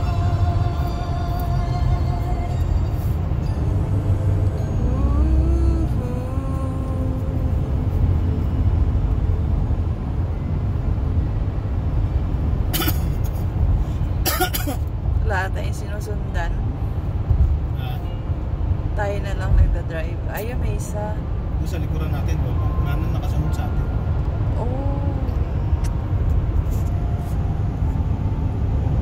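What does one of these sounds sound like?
A car drives steadily along a highway, its engine and tyres rumbling low inside the cabin.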